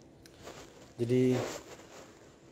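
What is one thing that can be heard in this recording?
A young man says a few words close to the microphone.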